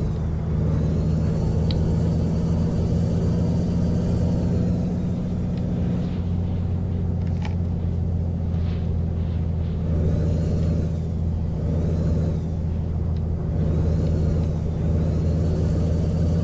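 A truck engine hums low and steady while driving on a highway.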